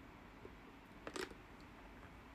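A young woman slurps a drink through a straw close by.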